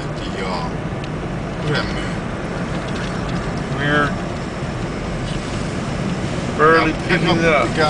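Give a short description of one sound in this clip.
A car engine hums steadily from inside the car as it drives.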